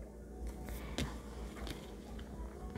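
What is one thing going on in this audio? Cards softly slide and tap on a table.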